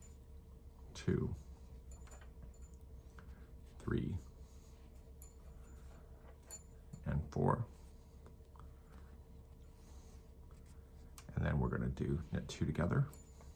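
Knitting needles click and tap softly.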